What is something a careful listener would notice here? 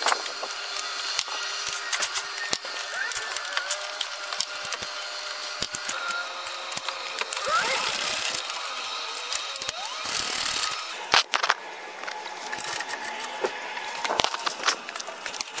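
Metal tools clink and knock against a car's underside.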